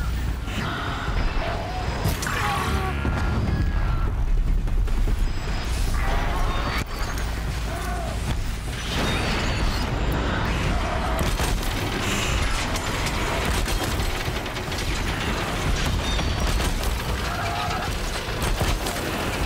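Explosions boom and crackle with sparks.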